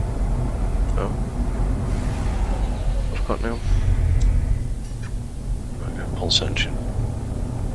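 A young woman speaks casually into a close microphone.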